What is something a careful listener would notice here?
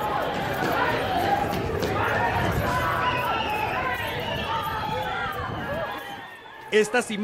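A crowd shouts and yells outdoors.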